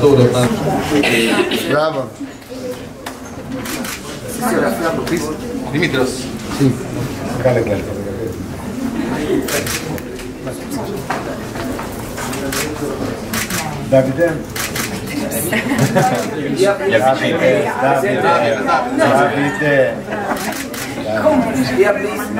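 Several men and women talk at once, close by.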